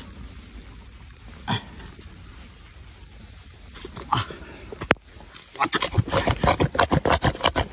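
Hands dig and squelch in wet mud, faster and louder toward the end.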